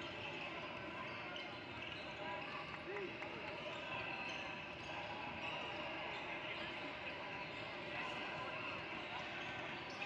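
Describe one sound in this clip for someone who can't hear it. A man speaks to a group of young players close by.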